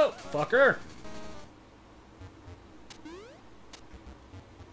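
Retro video game sound effects beep and chirp.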